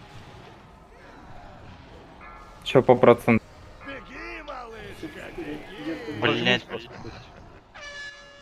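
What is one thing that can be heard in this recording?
Magical spell effects chime and whoosh.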